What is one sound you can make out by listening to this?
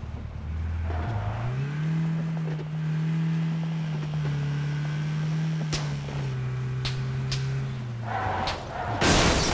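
A video game off-road vehicle's engine drones as it drives.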